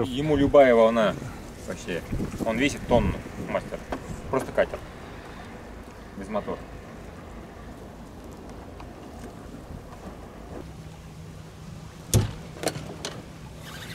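Water laps gently against a boat.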